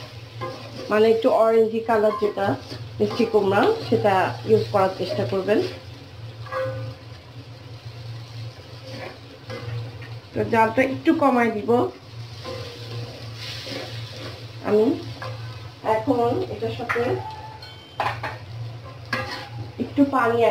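A metal spatula scrapes and clatters against a wok while stirring.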